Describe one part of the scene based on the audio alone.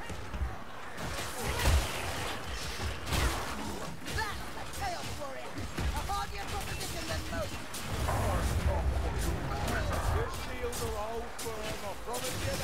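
Blades slash and strike in a melee fight.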